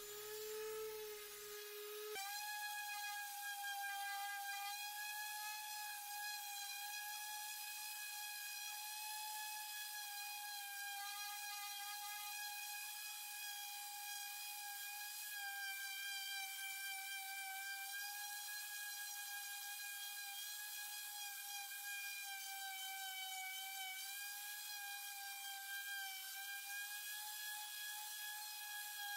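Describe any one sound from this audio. An electric sander whirs steadily with a high whine.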